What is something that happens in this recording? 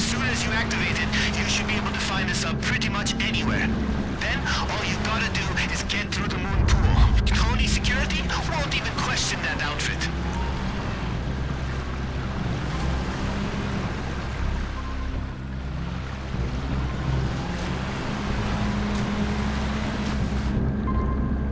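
Water splashes and sprays against a small craft's hull.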